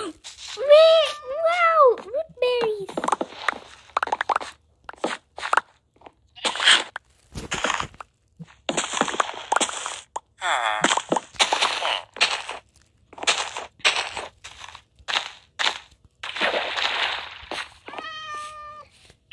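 Short crunching and popping sounds come again and again as crops are picked and planted.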